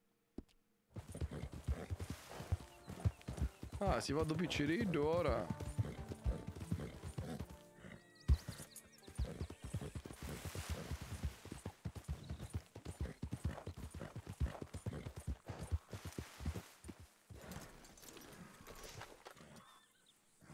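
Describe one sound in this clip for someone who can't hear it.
Hooves thud steadily as a horse gallops over grass.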